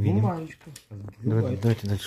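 A paper card rustles as hands lift it.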